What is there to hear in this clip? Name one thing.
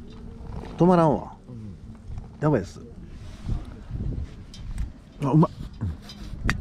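A man speaks briefly and casually, close by.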